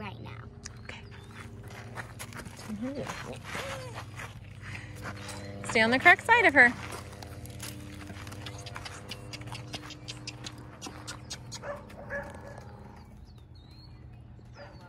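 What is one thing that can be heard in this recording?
A horse's hooves clop on packed dirt.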